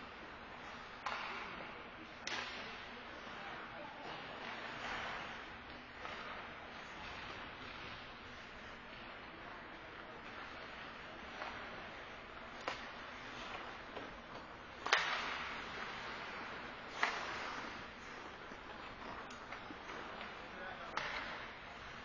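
Hockey sticks and a puck knock sharply against the boards.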